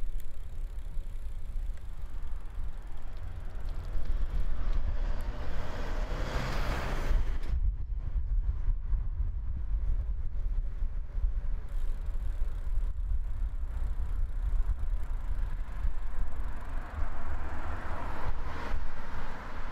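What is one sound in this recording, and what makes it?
Wind blows steadily in a low rumble outdoors.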